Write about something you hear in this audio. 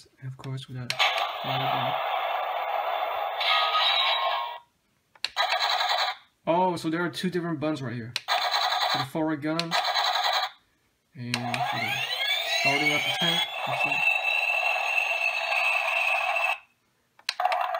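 A toy tank plays loud electronic battle sound effects.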